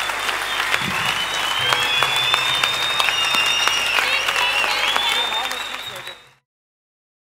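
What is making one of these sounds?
A large crowd claps and cheers in a big echoing hall.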